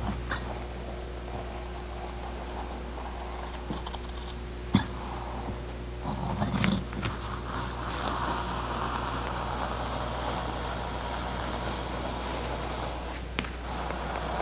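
Scissors snip and slice through stiff paper.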